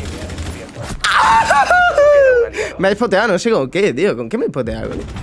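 A young man shouts excitedly into a close microphone.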